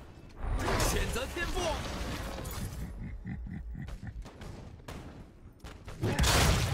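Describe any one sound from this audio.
Magic spells blast and crackle amid clashing combat sounds.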